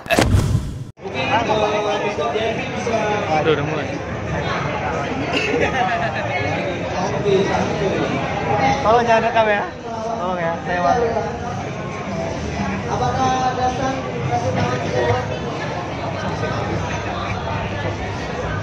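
Game music and sound effects play through a loudspeaker.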